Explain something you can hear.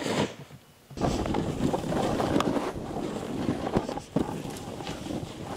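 A snowboard carves and hisses through snow.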